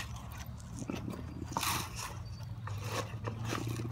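Seeds scatter and patter onto hard ground.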